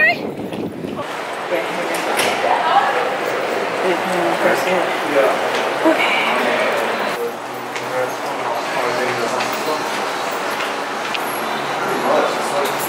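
A crowd of people murmurs and chatters indoors.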